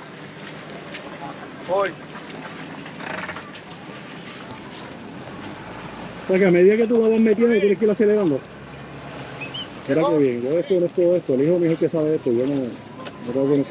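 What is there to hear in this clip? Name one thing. Water churns and splashes behind a boat's propeller.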